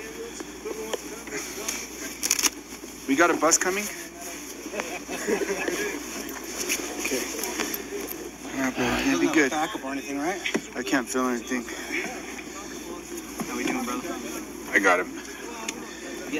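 Clothing rustles close by.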